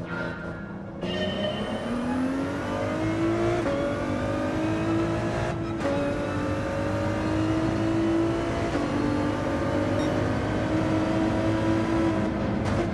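A racing car engine revs up hard and climbs through the gears.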